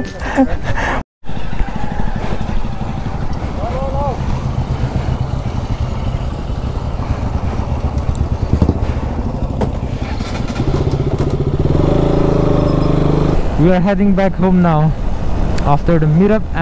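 Motorcycles ride past on a road.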